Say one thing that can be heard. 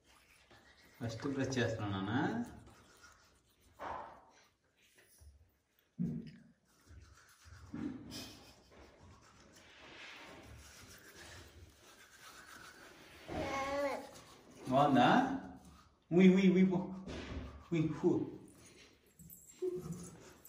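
A toddler babbles through a mouthful of toothbrush, close by.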